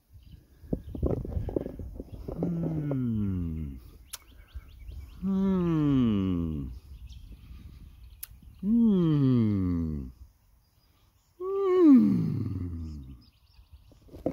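A man speaks close by in slow, drawn-out phrases that fall in pitch.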